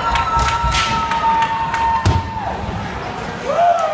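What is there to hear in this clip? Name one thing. A player thuds against the boards.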